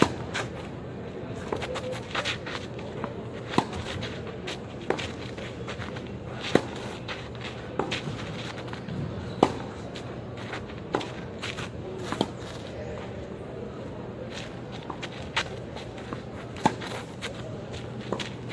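A tennis racket strikes a ball with sharp, regular pops.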